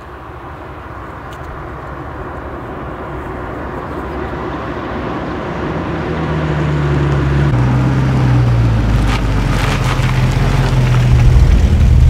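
Tyres roll over a road surface.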